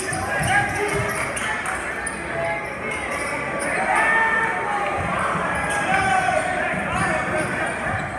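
A crowd chatters steadily in a large echoing gym.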